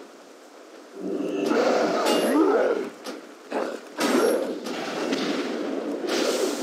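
Magic blasts crash and whoosh in quick bursts.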